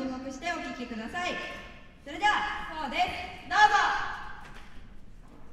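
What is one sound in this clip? A girl speaks with animation through a microphone in an echoing hall.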